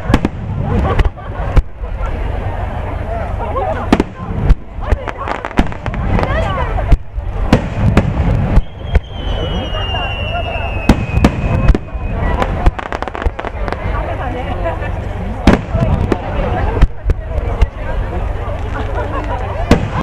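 Fireworks bang and crackle overhead, with sharp booms at irregular moments.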